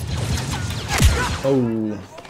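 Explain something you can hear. A gun fires with a loud blast.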